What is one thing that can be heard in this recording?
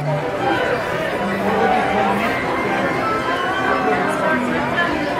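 Men and women chatter in a busy crowd nearby.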